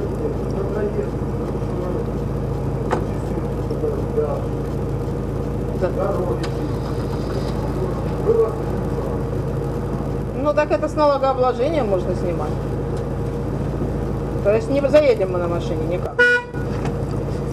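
A middle-aged man speaks with animation from a short distance.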